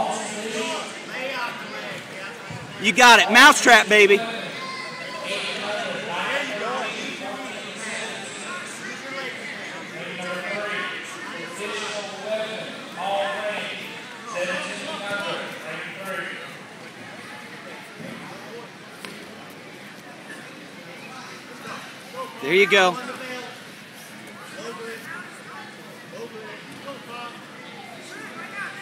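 A crowd of spectators talks and shouts in a large echoing gym.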